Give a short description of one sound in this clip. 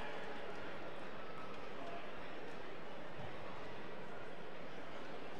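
A large indoor crowd murmurs and chatters in an echoing arena.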